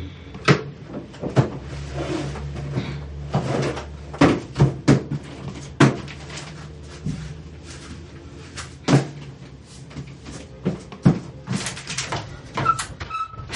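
A woman's shoes knock and thump on a hard floor.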